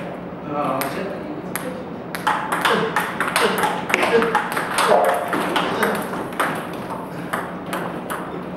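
A ping-pong ball clicks quickly back and forth off paddles and a table.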